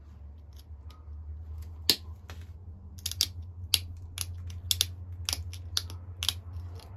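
A stone scrapes and clicks against a small metal blade in short strokes.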